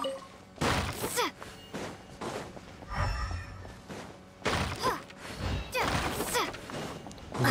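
A sword swings with sharp whooshing slashes.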